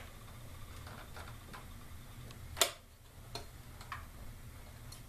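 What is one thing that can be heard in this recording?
Wires and parts rustle and click as a hand moves them inside a metal chassis.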